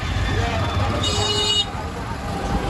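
A vehicle horn honks briefly.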